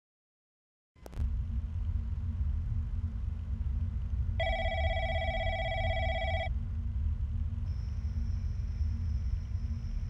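An electric fan whirs steadily with a low rumble.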